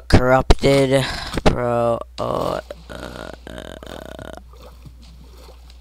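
Water splashes as someone wades and swims.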